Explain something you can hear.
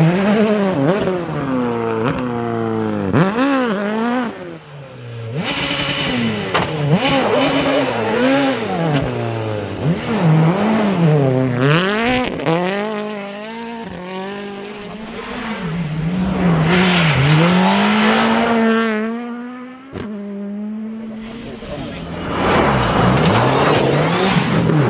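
A rally car engine roars and revs hard as it speeds past.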